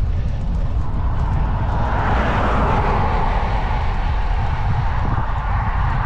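A car passes close by with a rising and fading rush.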